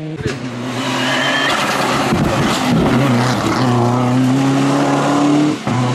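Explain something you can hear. A turbocharged four-cylinder rally car roars past at full throttle.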